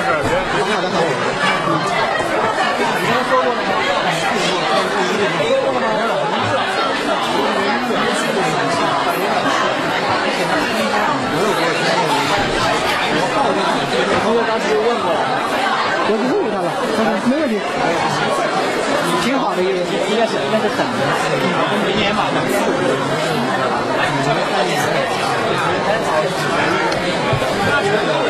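A crowd of men and women talks and shouts over one another in a large echoing hall.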